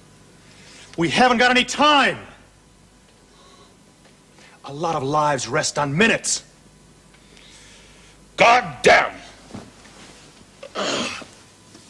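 An older man speaks slowly and wearily nearby.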